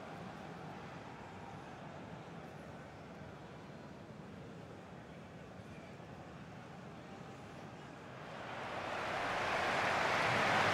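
A large stadium crowd murmurs and cheers, swelling louder toward the end.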